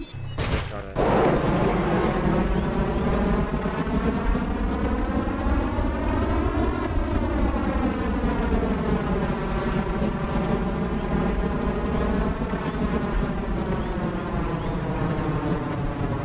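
Jet engines roar loudly and steadily, rising and falling in pitch.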